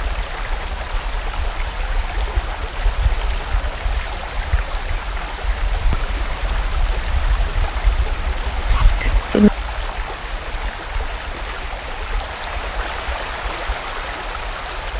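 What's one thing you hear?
A stream rushes and gurgles steadily over rocks.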